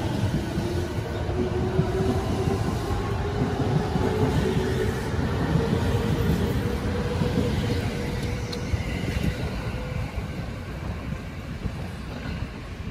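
A train rumbles past close by on the rails.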